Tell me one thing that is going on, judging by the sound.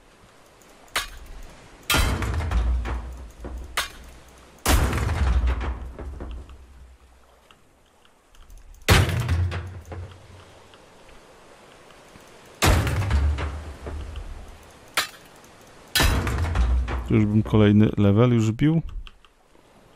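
A sledgehammer smashes crates and boxes with heavy crashing blows.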